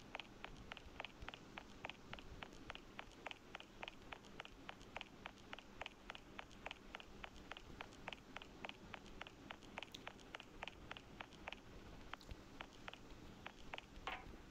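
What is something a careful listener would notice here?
Footsteps tap quickly and evenly as a game character runs.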